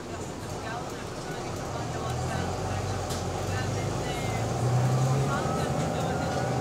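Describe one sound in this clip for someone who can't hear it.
A bus engine hums and rumbles steadily, growing louder.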